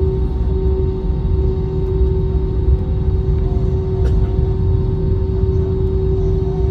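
A jet engine hums and whines steadily as an airliner taxis.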